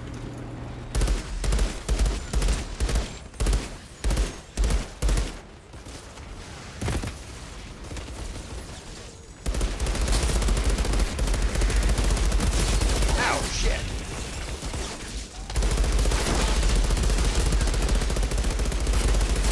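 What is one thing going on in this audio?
Gunfire bursts in rapid, loud volleys.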